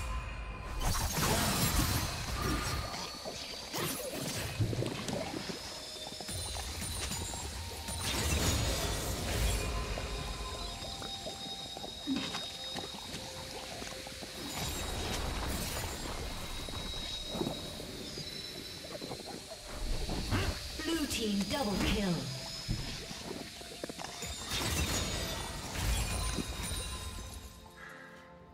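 Game spell effects crackle, clash and boom in a busy battle.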